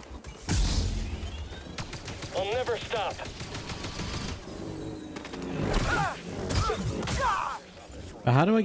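A lightsaber hums and clashes with crackling sparks.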